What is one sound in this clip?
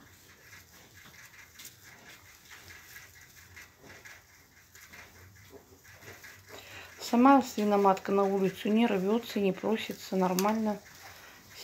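Newborn piglets squeak softly.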